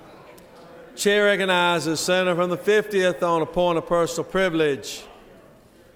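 A man speaks loudly and steadily through a microphone in a large hall.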